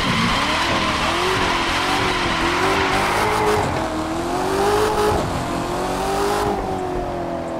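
Tyres screech and hiss as a car skids.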